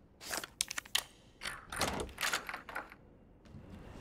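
A key rattles and turns in a door lock with metallic clicks.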